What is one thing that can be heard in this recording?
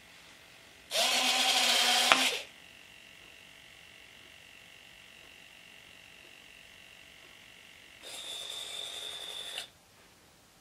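Small servo motors whir in short bursts.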